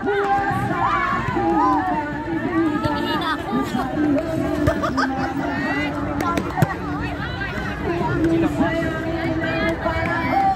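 A group of women chatter and laugh excitedly outdoors.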